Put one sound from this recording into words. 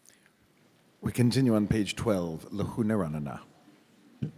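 An elderly man chants loudly into a microphone.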